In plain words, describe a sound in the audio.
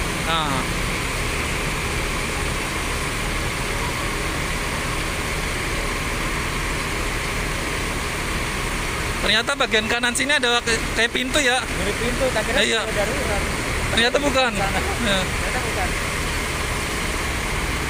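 A bus engine idles with a steady hum.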